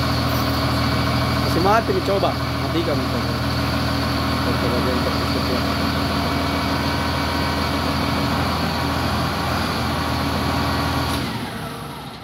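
A large diesel engine runs with a loud, steady rumble and then stops.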